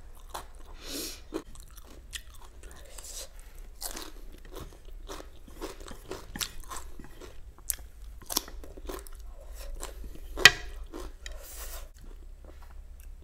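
A young woman chews and slurps food close to a microphone.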